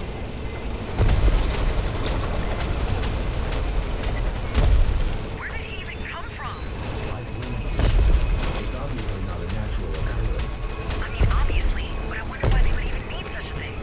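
Rocks crash and rumble with heavy booms.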